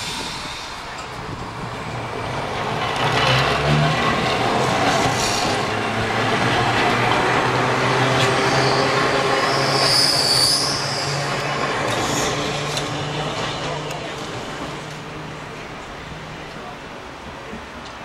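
An electric tram rolls by on rails.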